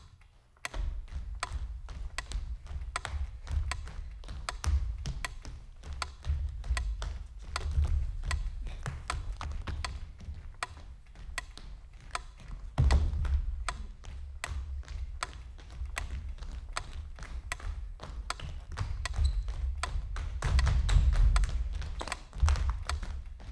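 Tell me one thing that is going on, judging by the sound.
Feet tap and thud on a wooden stage floor.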